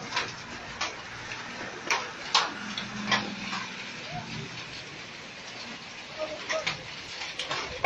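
Rain pours steadily outdoors.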